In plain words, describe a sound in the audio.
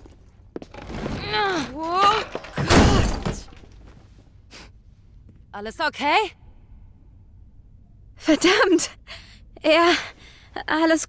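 A young woman calls out anxiously, close by.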